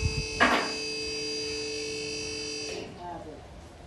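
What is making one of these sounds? A hydraulic lift motor hums steadily, then stops.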